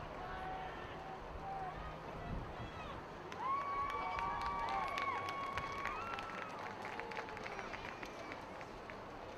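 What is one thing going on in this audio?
A large crowd chatters and calls out in an open stadium.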